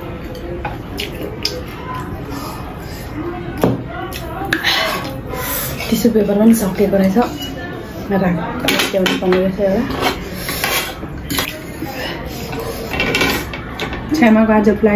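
Chopsticks click against plates.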